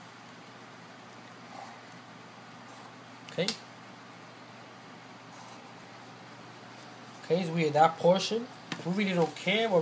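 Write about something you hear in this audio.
A felt-tip marker squeaks as it draws lines on paper.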